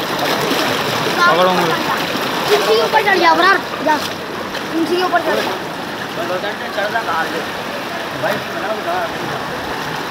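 Men talk and call out with animation nearby.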